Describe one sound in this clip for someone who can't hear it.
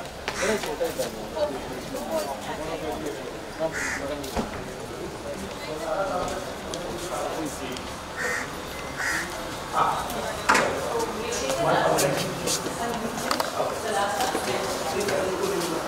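Several men talk with animation nearby, outdoors.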